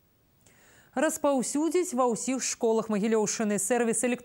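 A woman speaks clearly and calmly into a microphone, like a news presenter.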